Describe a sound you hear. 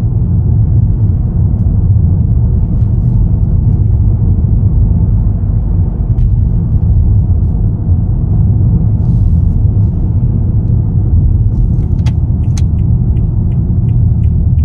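A car engine hums steadily with a low road rumble while driving.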